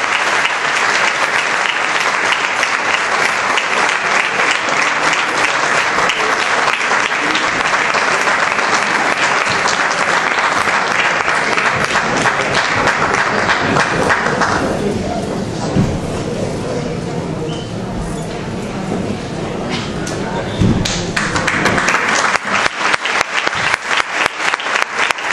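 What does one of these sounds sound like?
A small folk ensemble plays dance music in a large hall.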